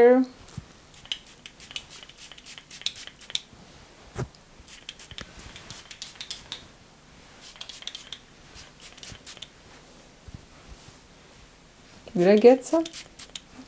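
A spray bottle hisses in short bursts.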